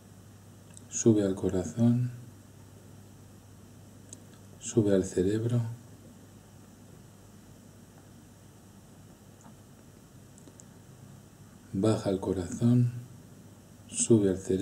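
A middle-aged man speaks calmly and slowly in short phrases, close to a microphone.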